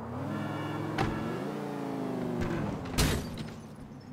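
A car smashes into obstacles with loud bangs.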